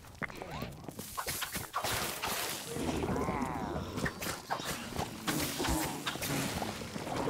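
Video game combat sounds clash and burst with bright whooshing blasts.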